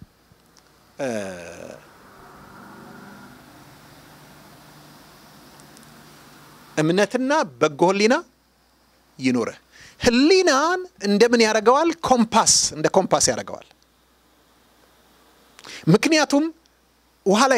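A middle-aged man preaches with animation into a microphone, in bursts with pauses.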